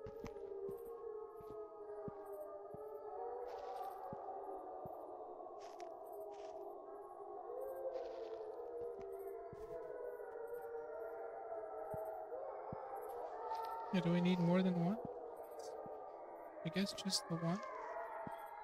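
Footsteps tread slowly on a path.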